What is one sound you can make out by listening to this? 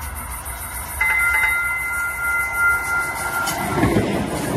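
A train horn sounds as a train approaches.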